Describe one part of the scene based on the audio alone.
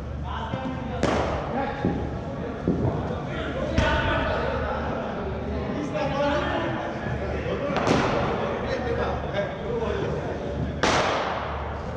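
A cricket ball cracks sharply off a bat, echoing.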